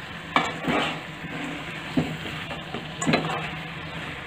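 Food squelches as a hand mixes it in a pan.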